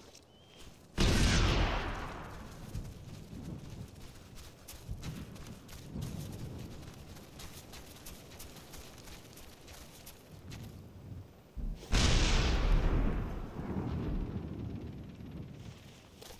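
Loud explosions boom and rumble away.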